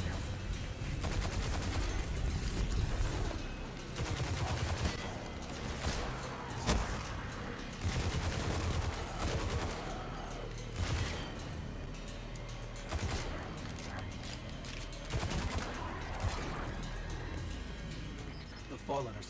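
Gunfire bursts rapidly in a game.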